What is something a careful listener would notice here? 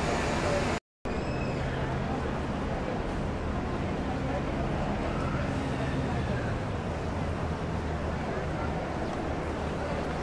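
A bus engine rumbles as the bus approaches and pulls in close by.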